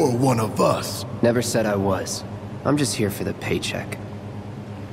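A young man speaks calmly and flatly.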